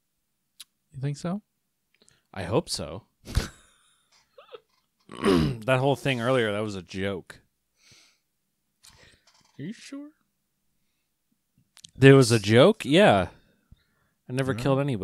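A second young man talks and laughs close into a microphone.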